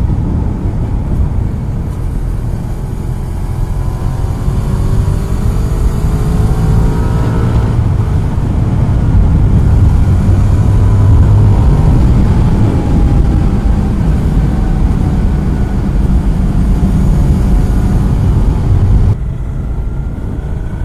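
A motorbike engine hums and rises and falls in pitch as it speeds up and slows.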